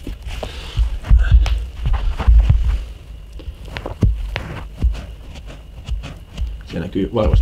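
Shoes thump softly on a carpeted floor.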